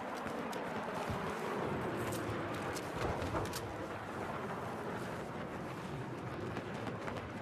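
Gunshots crack and echo in a battle.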